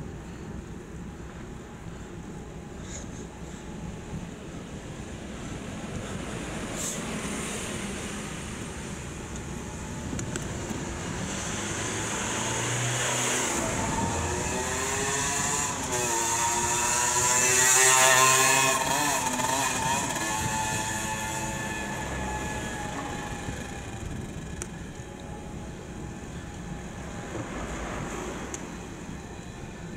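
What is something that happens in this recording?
Wind rushes over the microphone, rising and falling.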